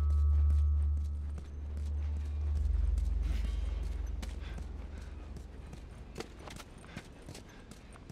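Footsteps crunch on gravel and debris.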